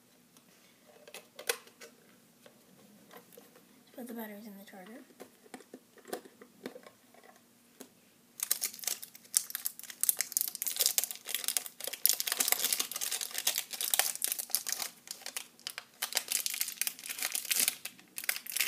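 Plastic parts rustle and clatter as they are handled.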